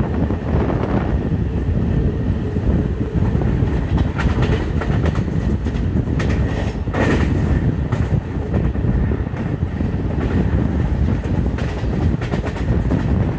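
Wind rushes loudly past an open train window.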